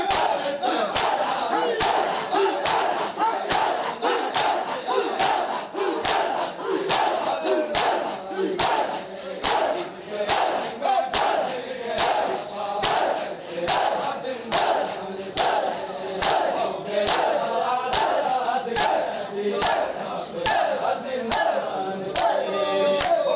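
Many men slap their bare chests in a steady, fast rhythm.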